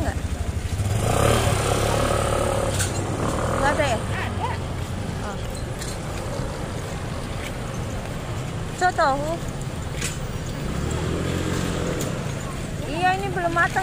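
Scooters pass close by with buzzing engines.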